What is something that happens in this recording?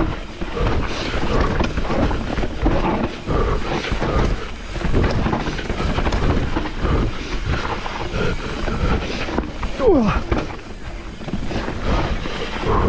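A bicycle rattles and clanks over rough ground.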